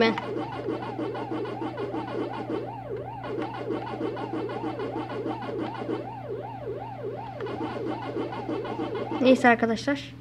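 An arcade game's electronic music plays with a rapid, warbling beat.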